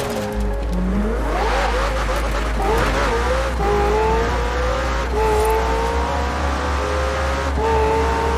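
A sports car engine revs up hard, climbing in pitch through quick gear changes.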